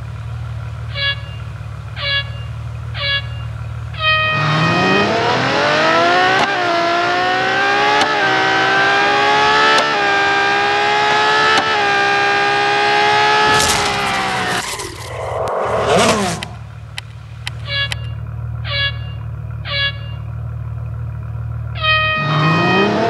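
Short electronic beeps count down four times, the last one held longer.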